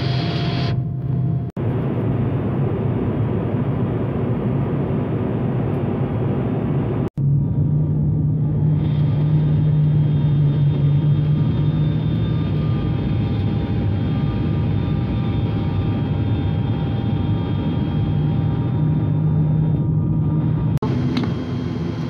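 Aircraft engines drone loudly and steadily.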